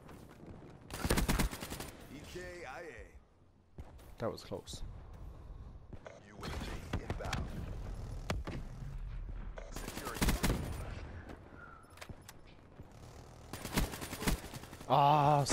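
Gunshots fire in short rapid bursts.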